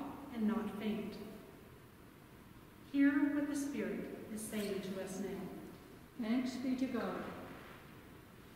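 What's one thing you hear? A young woman speaks calmly into a microphone in an echoing room.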